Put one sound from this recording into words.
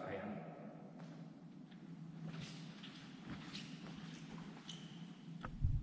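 Footsteps tap softly on a stone floor.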